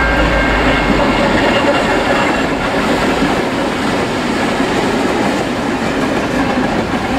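Container wagons clatter on the rails as they pass.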